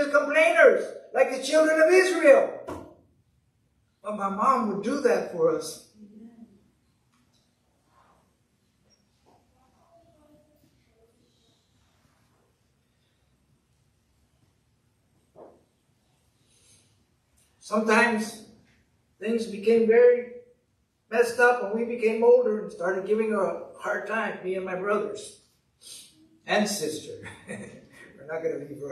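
A middle-aged man speaks calmly into a microphone, with a long pause in the middle.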